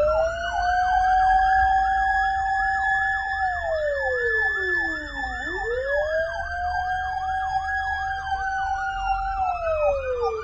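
A siren wails and yelps rapidly from the vehicle, close and loud.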